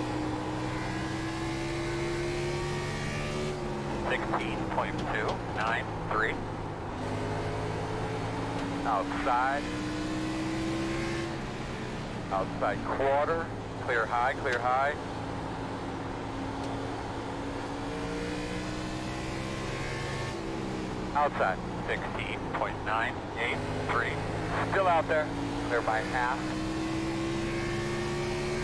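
A racing car engine drones steadily, rising and falling in pitch.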